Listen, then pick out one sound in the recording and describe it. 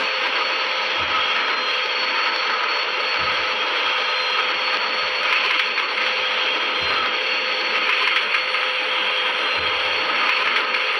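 Train wheels clack over rail joints at even intervals.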